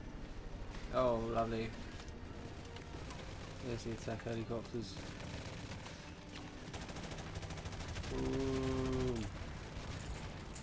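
Rapid gunfire rattles in the distance.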